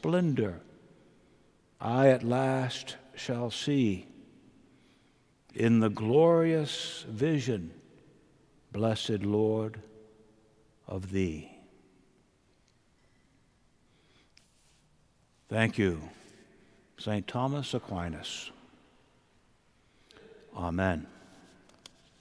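An elderly man speaks slowly and calmly into a microphone, in a large echoing hall.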